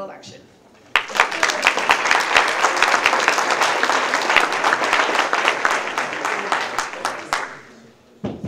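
An audience claps and applauds in a large hall.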